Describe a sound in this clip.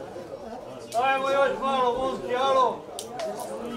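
A man calls out loudly and nearby.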